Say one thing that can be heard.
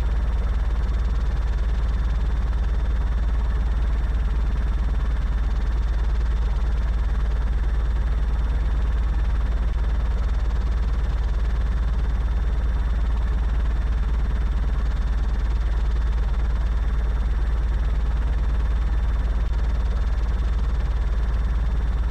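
A small propeller engine drones steadily.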